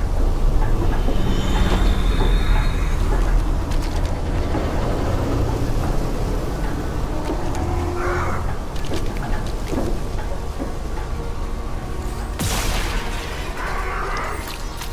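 Boot thrusters hum with a low, steady rumble.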